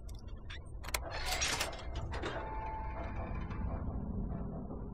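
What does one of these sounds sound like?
A heavy metal door creaks open.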